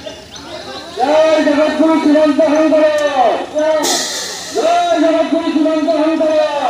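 A crowd of men chant loudly together outdoors.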